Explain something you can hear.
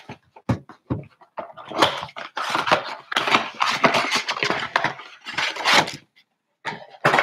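A cardboard box is torn open with scraping and ripping.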